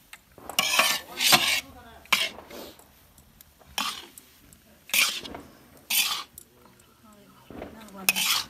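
A wooden spatula scrapes and stirs food in a metal wok.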